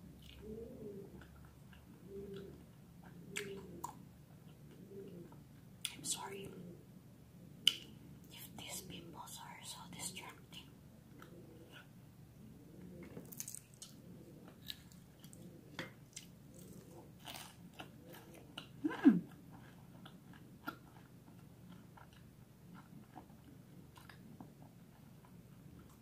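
A young woman chews and crunches fried pastry close to a microphone.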